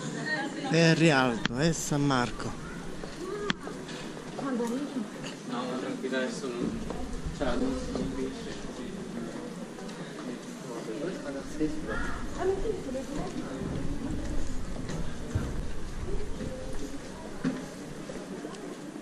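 Men and women talk and chatter nearby in a narrow echoing alley.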